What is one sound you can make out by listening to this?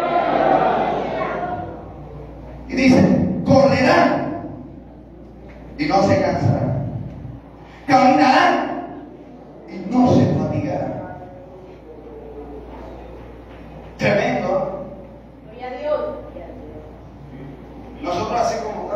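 A man preaches with animation through a loudspeaker in a large echoing hall.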